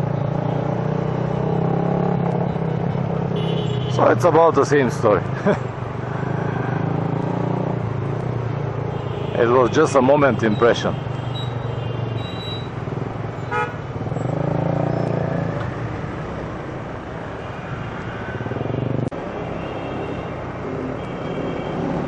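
Busy traffic rumbles all around.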